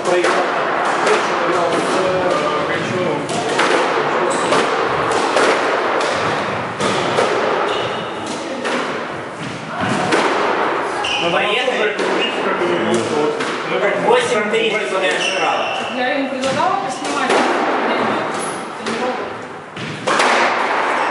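A squash ball smacks sharply against the walls, echoing in a hard-walled court.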